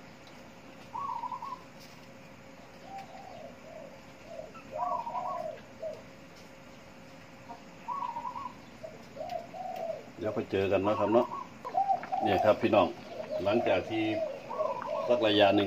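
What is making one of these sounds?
Liquid bubbles and simmers in a pot.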